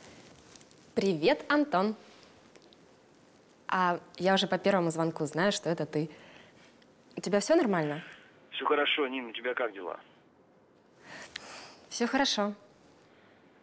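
A young woman talks on the phone nearby, cheerfully.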